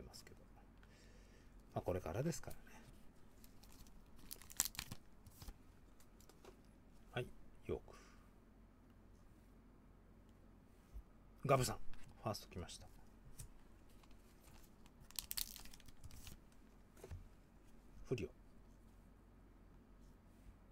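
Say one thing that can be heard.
Trading cards rustle and slide against each other as they are handled.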